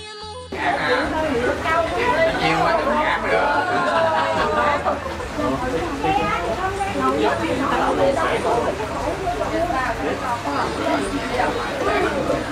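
Several men and women chatter together nearby.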